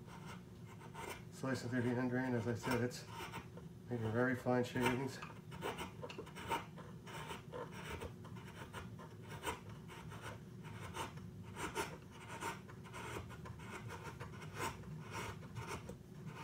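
A chisel rubs back and forth on a water stone.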